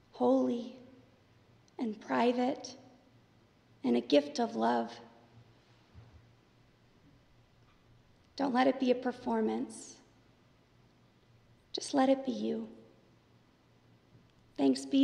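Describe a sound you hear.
A young woman reads aloud calmly into a microphone, with pauses, in a slightly echoing room.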